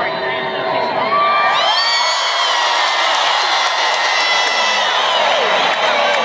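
A large crowd cheers and whistles loudly in a big echoing hall.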